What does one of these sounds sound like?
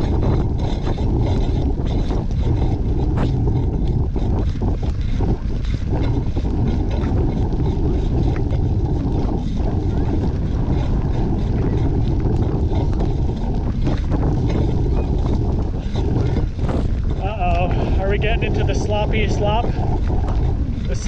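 Tyres roll and squelch over a wet, muddy dirt track.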